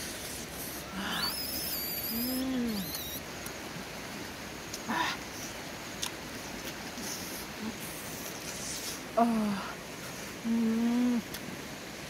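A young woman hums and murmurs with pleasure close by.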